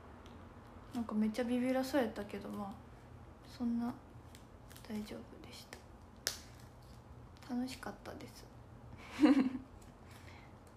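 A young woman speaks softly and closely into a microphone, in short phrases.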